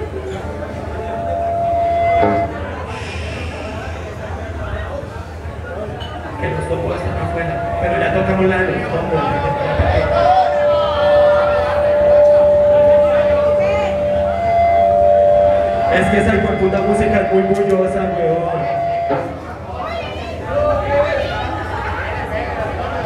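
A rock band plays loudly through a large sound system.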